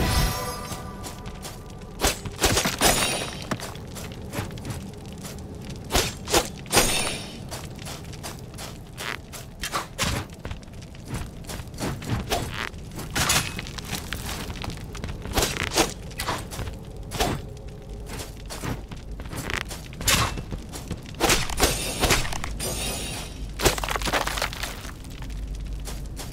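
Sword blows clash and slash repeatedly.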